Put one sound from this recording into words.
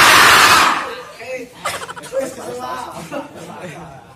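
Young men laugh and chatter nearby.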